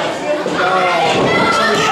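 A referee slaps the mat.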